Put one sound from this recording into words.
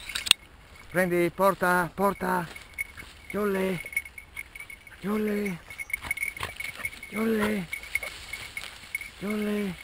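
A dog barks and bays in bursts close by.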